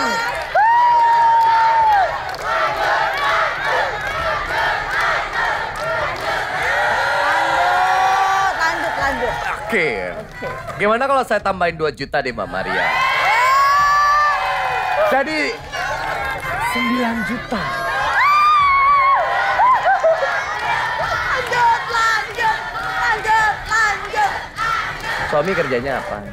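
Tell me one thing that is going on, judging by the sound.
A crowd of young women cheers and shouts excitedly.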